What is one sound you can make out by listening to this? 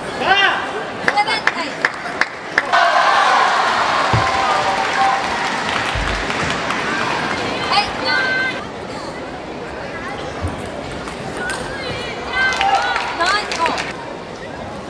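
A table tennis ball clicks sharply back and forth off paddles and a table.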